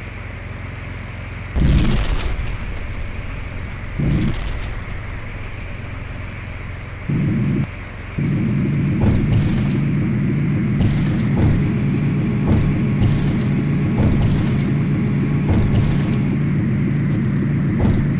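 Aircraft wheels rumble and thump over a runway.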